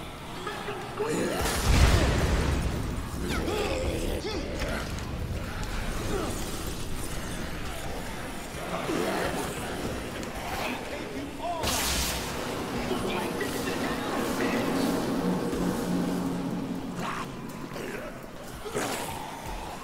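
Blows thud against bodies.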